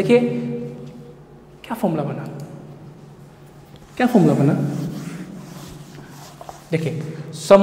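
A man speaks in bursts, explaining with animation in a reverberant room.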